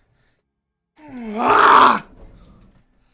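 A man yells loudly into a close microphone.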